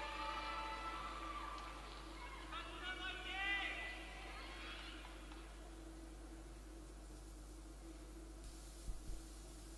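Skate blades scrape across the ice.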